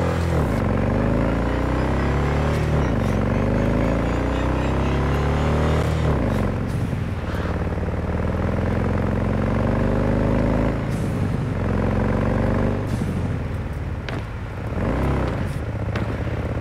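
A motorcycle engine revs up and shifts gears as it speeds along.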